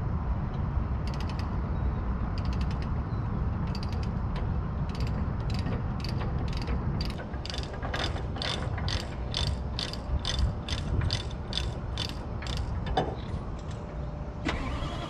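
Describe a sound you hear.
A ratchet clicks rapidly.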